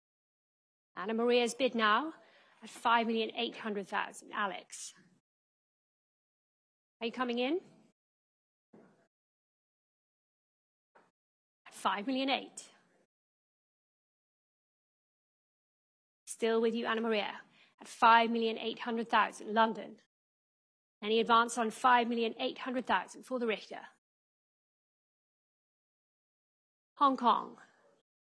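A woman announces bids into a microphone with animation.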